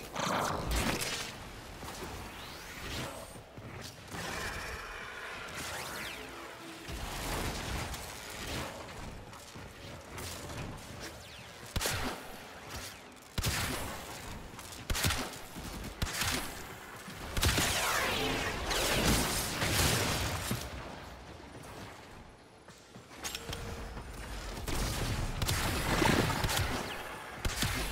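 Gunfire and blasts crack in quick bursts.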